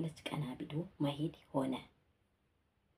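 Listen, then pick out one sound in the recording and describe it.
A woman speaks calmly and close up into a microphone.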